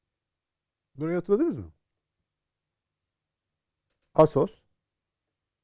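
A middle-aged man speaks calmly through a microphone in short bursts.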